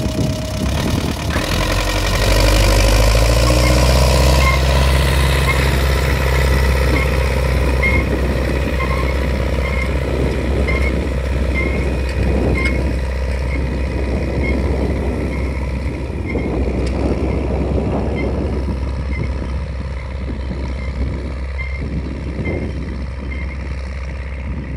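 A disc harrow rattles and scrapes through the soil.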